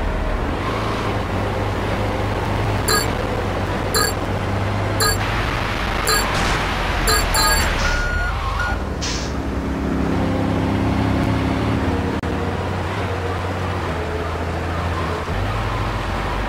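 A fire truck engine drones as the truck drives along a road.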